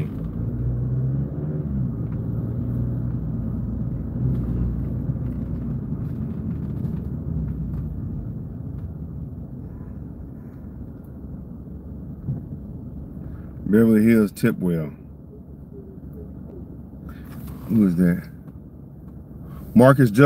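A car engine and tyres rumble low and steady from inside a car, growing quieter as it slows.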